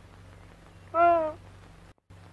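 A young woman cries out briefly.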